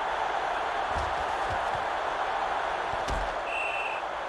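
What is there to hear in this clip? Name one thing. Football players' pads collide in a tackle.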